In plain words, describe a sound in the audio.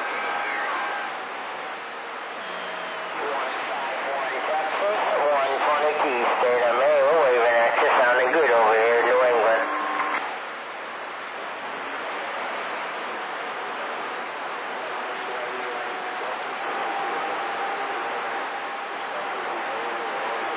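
Radio static hisses steadily through a loudspeaker.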